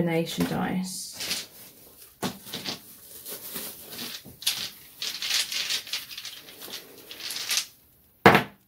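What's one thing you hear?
Paper rustles softly between fingers.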